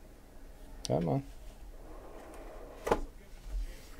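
A box lid slides off with a soft scrape.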